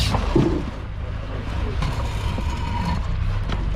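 Tyres crunch and scrape over rocks.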